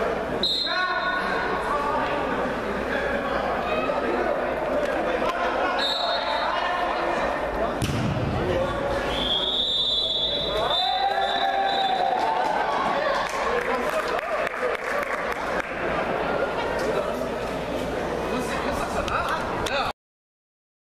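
Young men shout across a large echoing hall.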